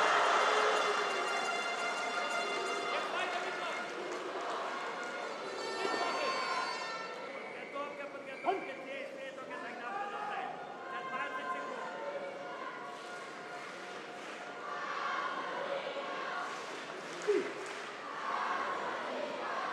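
A crowd cheers and murmurs in a large echoing hall.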